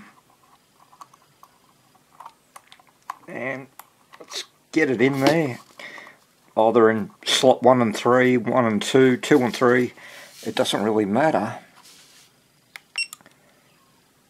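Small plastic parts click and rattle as they are handled close by.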